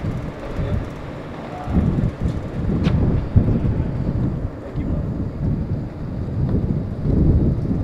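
A wheeled case rolls over pavement.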